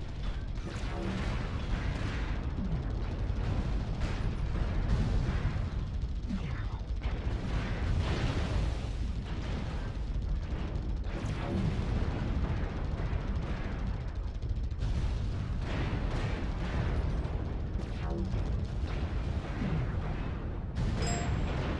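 Heavy weapons fire in rapid bursts.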